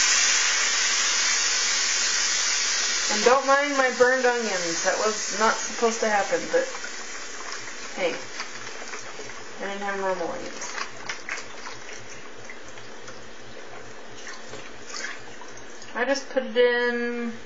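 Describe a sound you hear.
Liquid pours from a carton into a hot pan.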